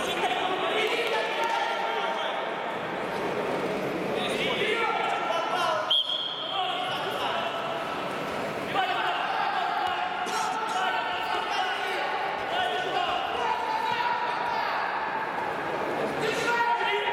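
A crowd of spectators talks and calls out in a large echoing hall.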